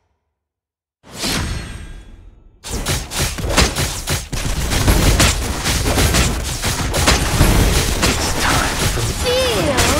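Loud battle sounds of clashing weapons and bursting spells play on.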